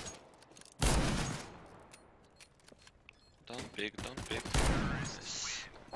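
Gunshots crack sharply in a game.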